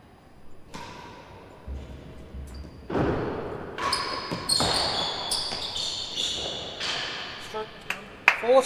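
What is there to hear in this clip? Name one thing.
A racket strikes a ball with a sharp crack that echoes in a large hall.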